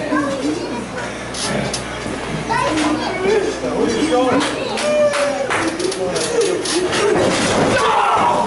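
A man speaks loudly, with echo.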